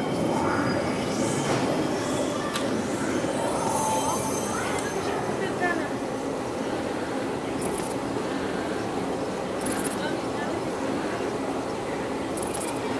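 A pen scratches lightly across paper.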